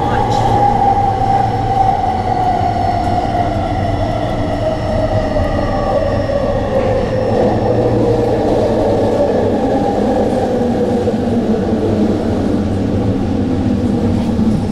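Train wheels rumble on the rails.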